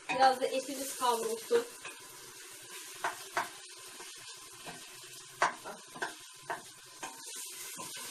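A metal pot lid clinks against a pot.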